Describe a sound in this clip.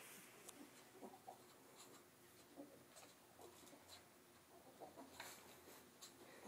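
A small animal rustles softly on a towel.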